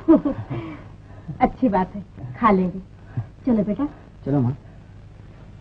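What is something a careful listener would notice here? Women talk together nearby.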